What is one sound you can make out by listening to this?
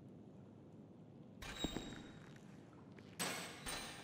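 A metal gate clanks and swings open.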